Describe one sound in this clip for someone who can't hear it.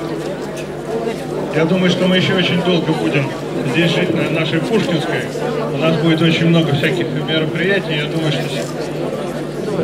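An elderly man speaks into a microphone, amplified through a loudspeaker.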